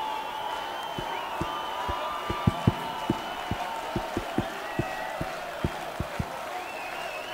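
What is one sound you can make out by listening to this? A drum thumps in a steady beat.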